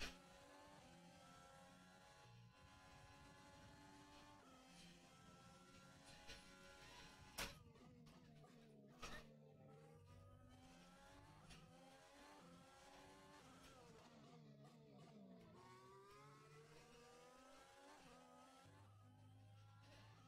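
A racing car engine whines and revs up and down through gear changes.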